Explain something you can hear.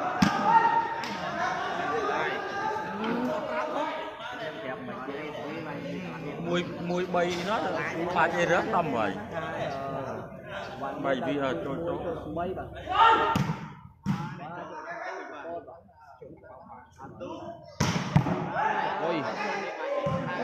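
A crowd of men and women chatters and calls out in a large echoing hall.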